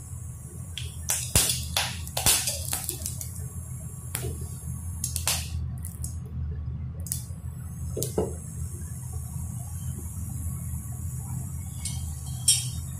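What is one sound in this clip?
Hot oil crackles and pops in a metal pan.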